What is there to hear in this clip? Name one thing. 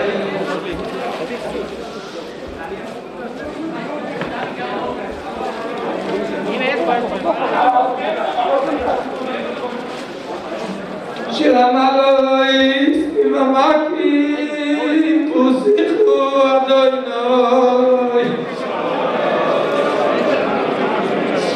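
A crowd of men murmurs and chatters in a large echoing hall.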